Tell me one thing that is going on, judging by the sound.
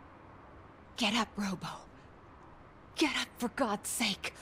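A man talks calmly, close to a microphone.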